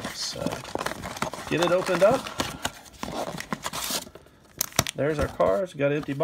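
Cardboard boxes slide and tap on a wooden table.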